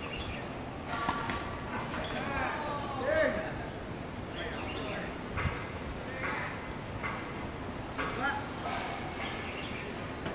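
Men call out across an outdoor court.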